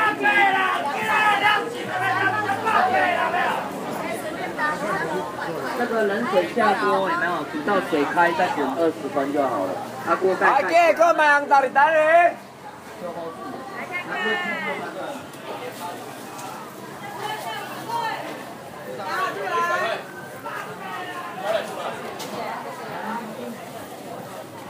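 A busy crowd murmurs and chatters around.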